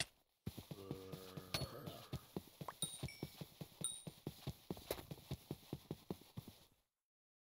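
Footsteps thud quickly and steadily on grass.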